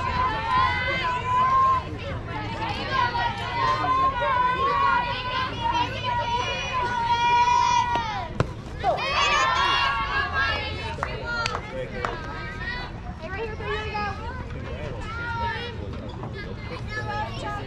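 Young women shout and cheer from across an open field.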